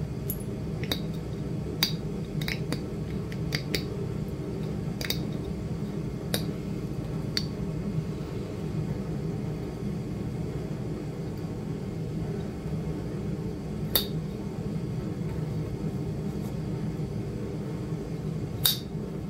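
Small fragments click and tick as they break off.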